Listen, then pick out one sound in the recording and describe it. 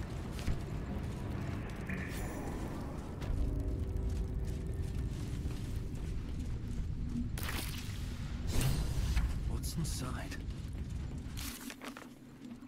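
Low, rumbling ambient sound plays.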